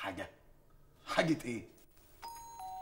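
A young man speaks anxiously, close by.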